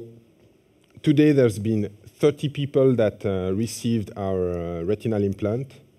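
A man speaks calmly into a microphone, heard through loudspeakers in a large hall.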